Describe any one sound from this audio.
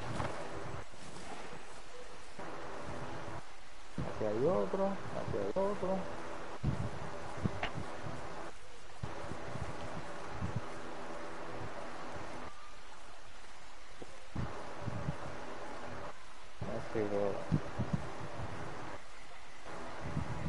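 Footsteps rustle softly through low undergrowth.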